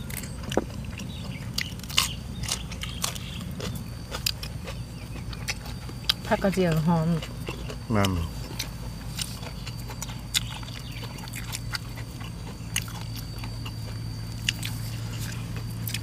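A man and a woman chew food with wet smacking sounds.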